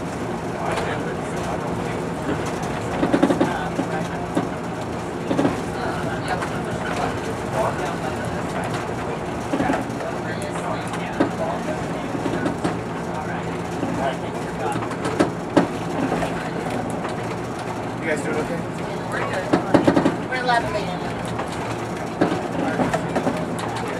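A diesel railcar's engine drones under way, heard from inside.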